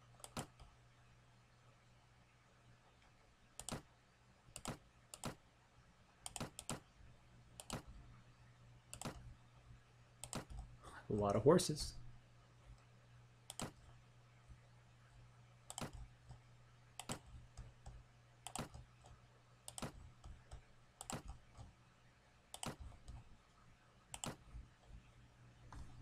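Short clicks and clatters sound as items are dropped into place, again and again.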